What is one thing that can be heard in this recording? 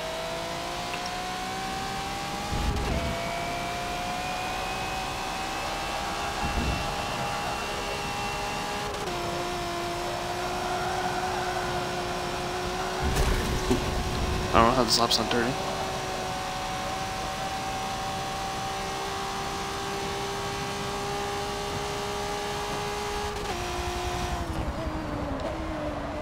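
A racing car engine roars steadily, its pitch climbing and dropping with each gear change.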